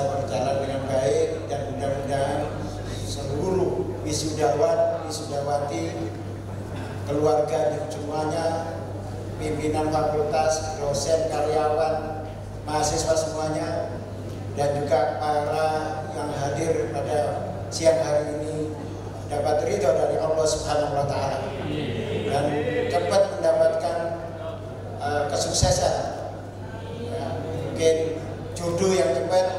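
A middle-aged man speaks steadily through a microphone.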